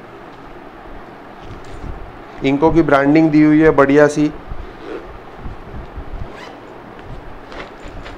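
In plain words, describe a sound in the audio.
A zipper slides shut on a bag.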